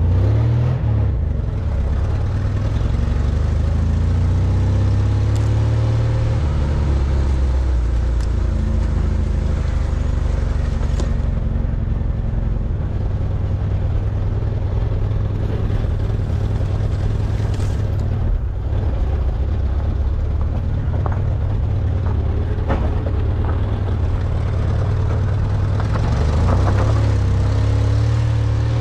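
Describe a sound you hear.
A vehicle engine rumbles steadily and revs up and down.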